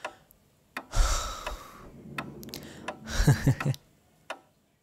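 A young man laughs softly close by.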